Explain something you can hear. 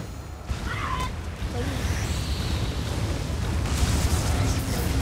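Game music and battle sound effects play with heavy booming bass.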